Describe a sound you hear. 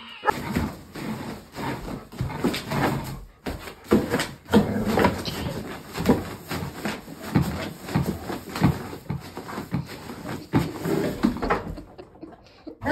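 A dog rummages through a pile of clothes, rustling and tugging at fabric.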